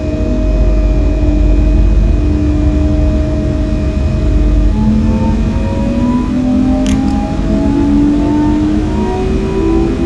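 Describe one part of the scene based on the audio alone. Train wheels rumble low and steadily along the rails.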